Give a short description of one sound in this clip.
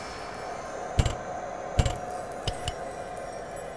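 Short menu clicks sound in quick succession.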